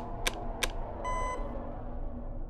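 An electronic beep sounds briefly.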